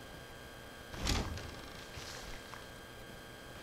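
A wooden door swings open with a thud.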